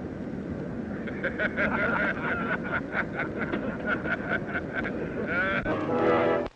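Several elderly men laugh heartily together close by.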